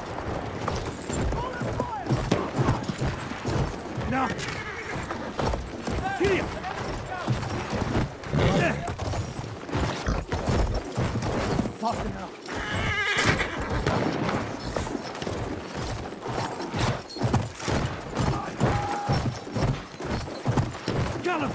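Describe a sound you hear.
A horse gallops.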